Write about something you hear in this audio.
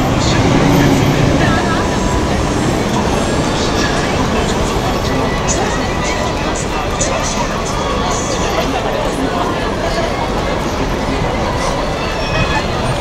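A crowd of people chatters nearby outdoors.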